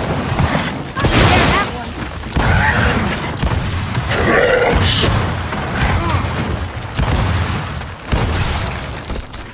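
Gunfire blasts loudly in rapid bursts.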